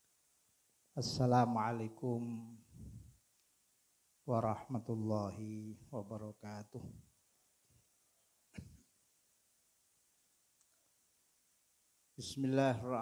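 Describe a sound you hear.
A man speaks with long pauses through a microphone.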